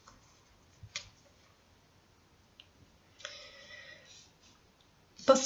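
Playing cards rustle and slap together as they are shuffled by hand.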